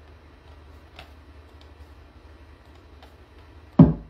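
Fingers softly tap and click on keys.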